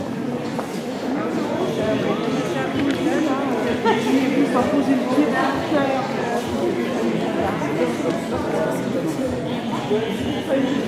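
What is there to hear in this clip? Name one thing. A crowd of adults chatters all around.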